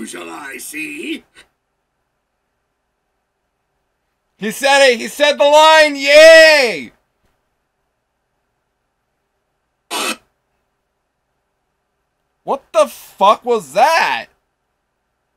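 A young man speaks drowsily, close to a microphone, in short bursts with pauses.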